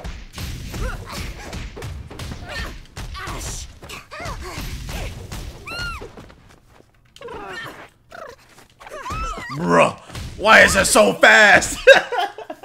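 A man talks with excitement close to a microphone.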